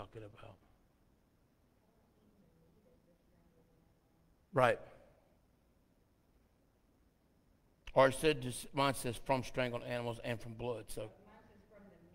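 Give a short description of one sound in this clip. A man speaks through a microphone in a large echoing hall, with long pauses.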